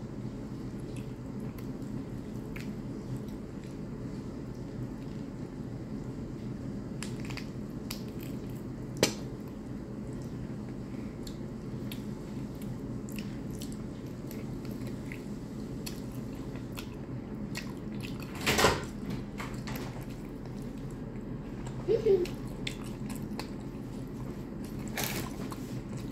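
Fingers squish through soft food on a plate.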